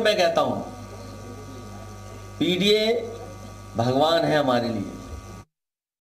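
A man speaks calmly into a microphone, in short bursts.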